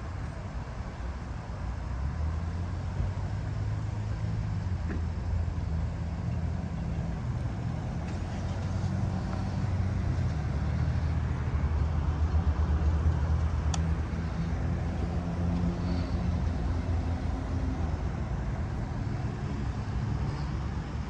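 Car engines idle nearby with a low, steady rumble.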